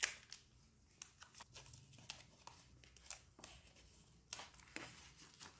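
Foil crinkles as hands unwrap it.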